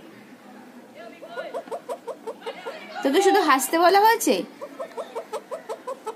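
A parrot chatters in quick, rhythmic squawks close by.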